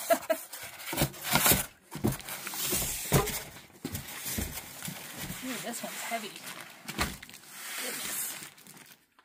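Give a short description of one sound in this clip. Cardboard box flaps rustle and thump.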